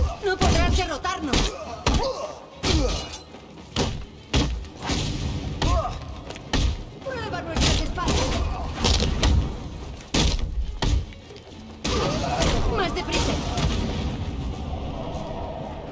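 Punches and kicks land with heavy thuds in a fast brawl.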